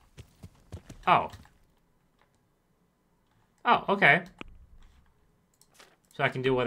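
A young man speaks close to a microphone, in short bursts.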